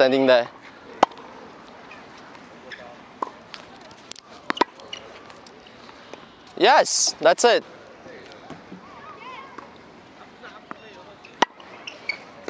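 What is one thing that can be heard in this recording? A tennis ball is struck sharply by a racket.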